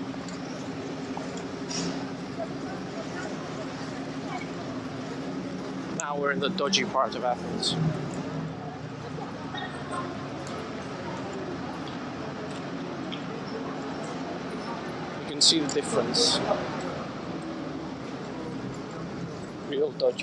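City traffic hums steadily along a street outdoors.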